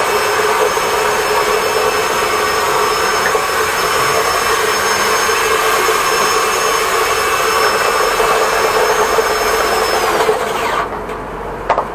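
A vacuum cleaner roars steadily close by, then switches off and winds down.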